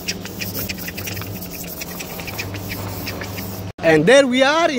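A sanding pad scrubs against a plastic surface in quick strokes.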